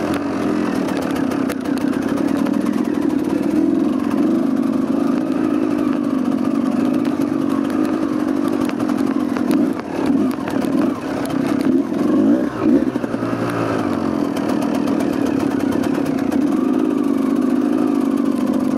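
A dirt bike engine hums and revs up and down close by.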